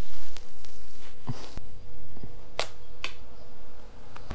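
A plastic panel knocks and clicks as it is fitted onto a motorcycle.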